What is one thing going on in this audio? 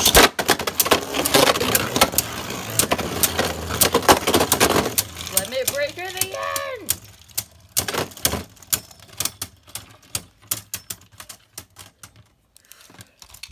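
Spinning tops clatter and knock against each other.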